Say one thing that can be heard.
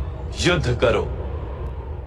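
A young boy calls out loudly.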